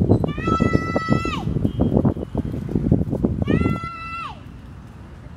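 A young child squeals in long, high cries.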